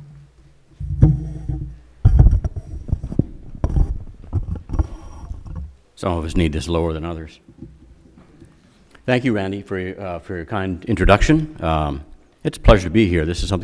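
An older man speaks into a microphone with a measured tone.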